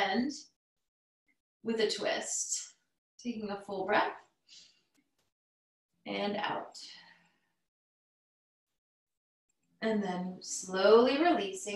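A woman speaks calmly through a microphone, giving instructions in short phrases.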